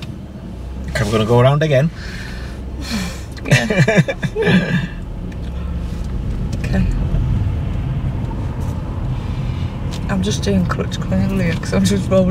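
A man speaks calmly inside a car.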